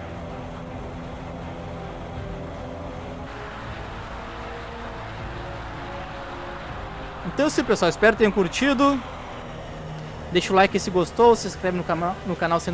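Propeller engines drone steadily.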